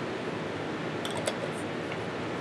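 A metal lid clicks on a glass jar.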